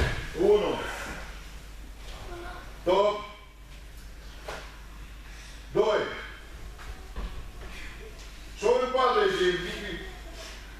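A man calls out loud commands at regular intervals in an echoing hall.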